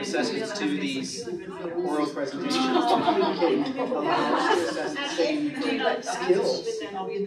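Several people chatter in a room.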